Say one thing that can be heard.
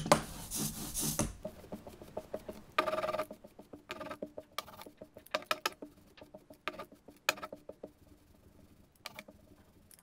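An ink roller rolls across a plate.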